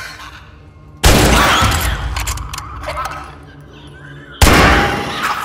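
A rifle fires loud shots that echo in an enclosed space.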